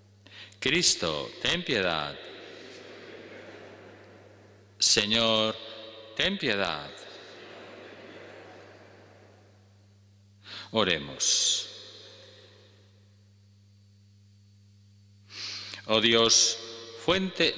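An elderly man speaks slowly into a microphone, with a long echo in a large hall.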